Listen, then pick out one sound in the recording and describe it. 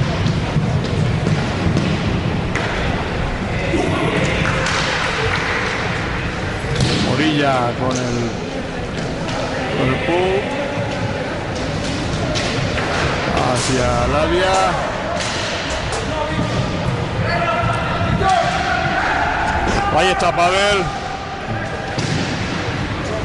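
Roller skates roll and scrape on a wooden floor.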